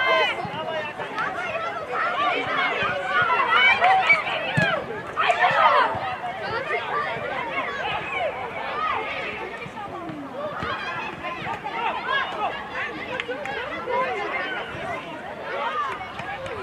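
Many children shout and chatter outdoors.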